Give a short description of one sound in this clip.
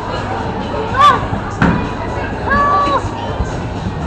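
A bowling ball thuds onto a lane and rolls away.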